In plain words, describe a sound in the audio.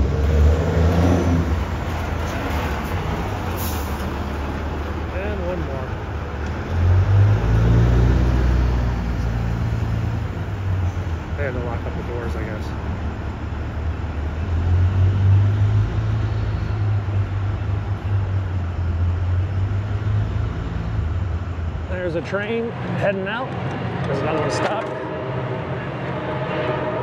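Traffic hums along a city street outdoors.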